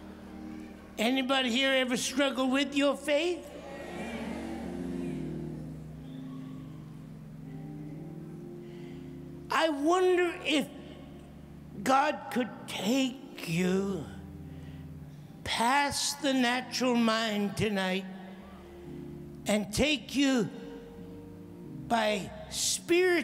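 An elderly man preaches forcefully into a microphone, his voice carried through loudspeakers.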